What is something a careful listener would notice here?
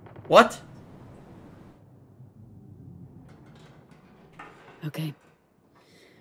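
A young woman speaks firmly.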